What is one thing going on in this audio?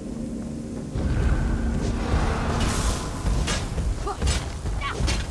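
A large stone creature attacks with heavy thuds.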